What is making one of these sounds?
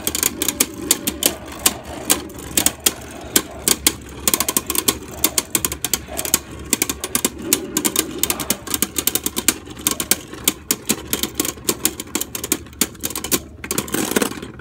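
Spinning tops clash together with rapid sharp clicks.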